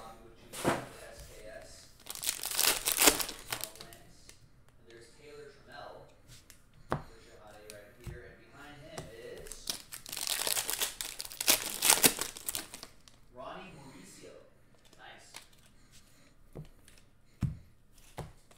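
Cards shuffle and flick through hands.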